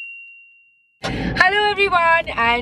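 A young woman speaks excitedly and laughs close to the microphone.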